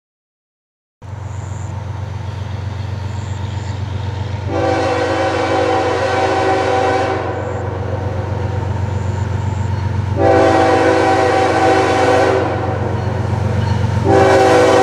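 A diesel locomotive rumbles steadily as it approaches.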